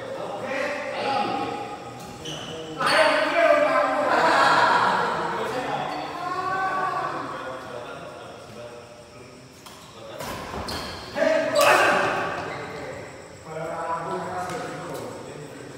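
Shuttlecocks are struck with rackets in a rally.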